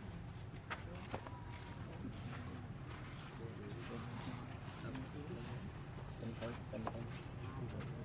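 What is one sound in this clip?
A baby monkey chews and rustles a dry leaf close by.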